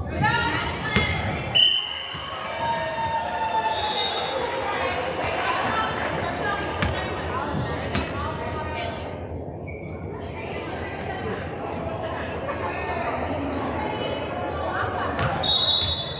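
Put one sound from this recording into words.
Girls and women talk and call out in a large echoing gym.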